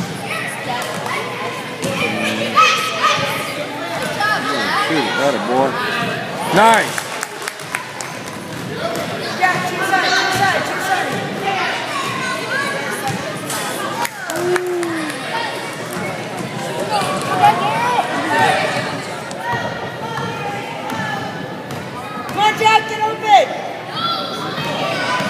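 Children shout and call out across a large echoing gym.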